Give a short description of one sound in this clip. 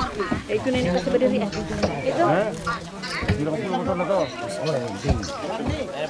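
Several people talk quietly in the background outdoors.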